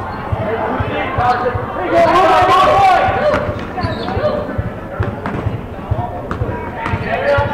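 Spectators shout and cheer.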